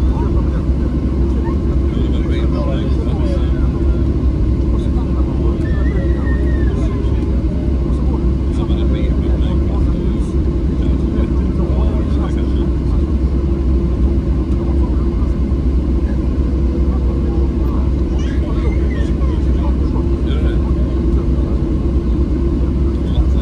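Jet engines roar with a steady low rumble inside an aircraft cabin.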